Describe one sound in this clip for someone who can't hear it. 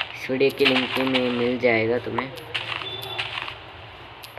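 Leafy blocks crunch and break with quick rustling clicks.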